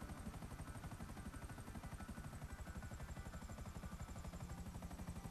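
A helicopter's rotor blades thump rapidly and steadily.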